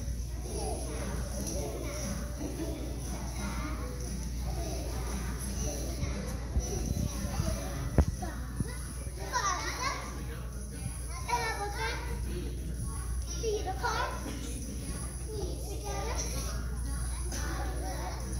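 Young children sing together in an echoing room.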